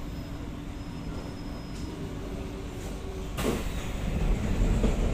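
A train car hums and rumbles steadily.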